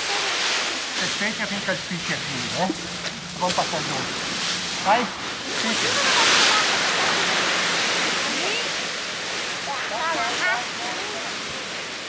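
Children call out to each other nearby.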